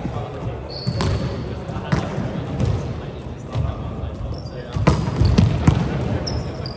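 A volleyball is struck by hand in a large echoing gym.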